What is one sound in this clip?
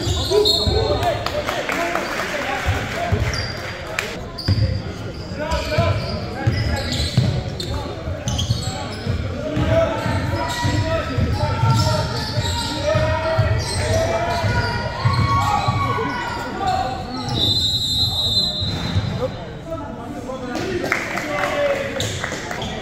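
A basketball thumps as it is dribbled on a wooden floor in an echoing gym.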